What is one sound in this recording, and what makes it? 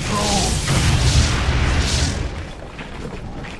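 Magic spells whoosh and boom in a fight.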